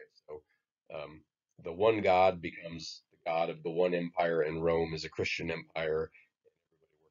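A middle-aged man speaks calmly and close to a microphone, lecturing.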